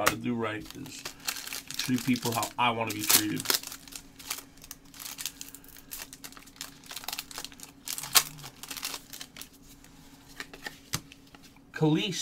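Card packs rustle and tear open.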